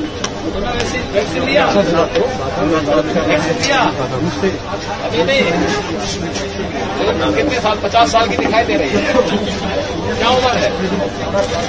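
A young woman speaks with animation to a man.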